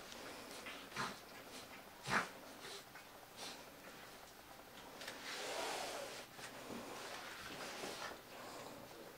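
A puppy growls playfully while wrestling.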